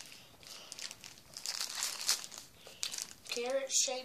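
Plastic wrapping crinkles in a hand.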